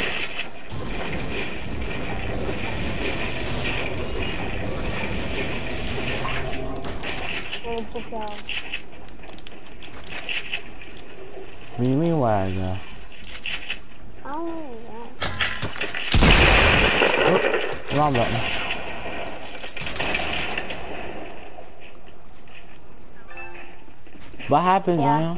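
Wooden walls snap into place in a video game.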